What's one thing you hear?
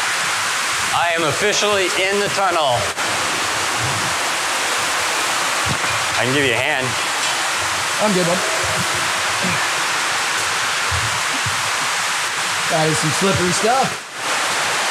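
A man talks over the rushing water.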